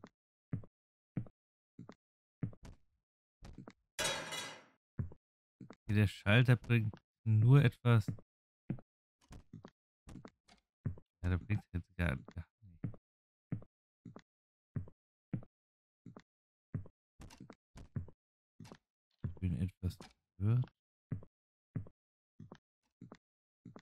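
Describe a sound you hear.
Footsteps tap steadily on a hard tiled floor.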